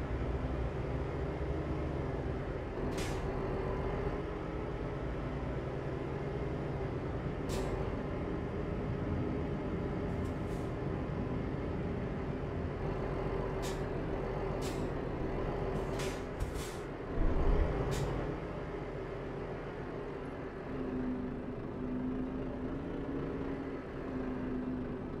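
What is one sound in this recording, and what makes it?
A heavy diesel truck engine drones while cruising, heard from inside the cab.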